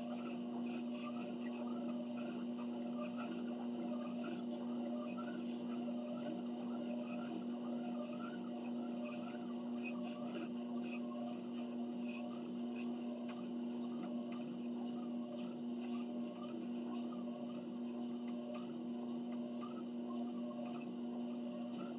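A treadmill motor hums steadily.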